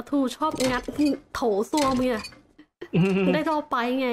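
A wrench clanks against a porcelain sink.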